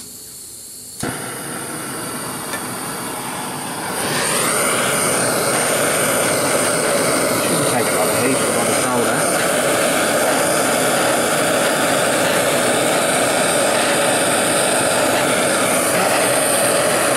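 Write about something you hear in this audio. A gas torch roars with a steady, loud hiss.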